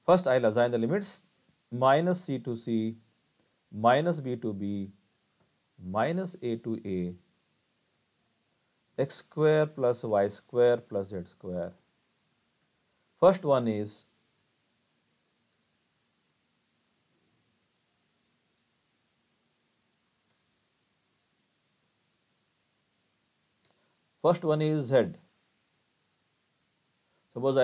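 A man speaks calmly and explains through a microphone, in short phrases with pauses.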